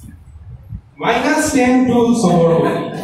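A man speaks loudly to a crowd in an echoing hall.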